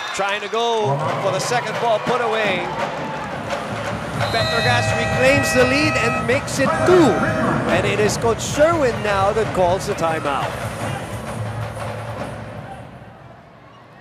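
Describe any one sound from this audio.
A crowd cheers loudly in a large echoing arena.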